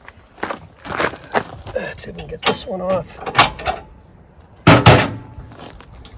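Metal clanks as a trailer hitch is adjusted.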